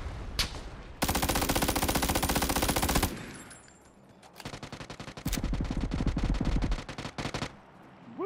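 A rifle fires in bursts.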